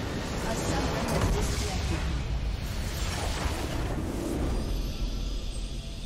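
A large structure explodes with a heavy boom.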